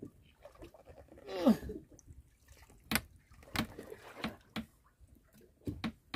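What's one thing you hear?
A large fish thrashes and slaps against a wooden boat deck.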